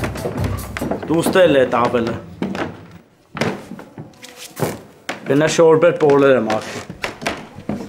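A man speaks loudly and firmly nearby.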